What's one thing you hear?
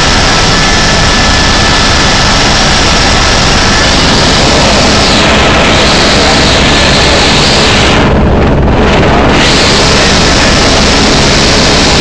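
A helicopter engine and rotor roar loudly and steadily from inside the cabin.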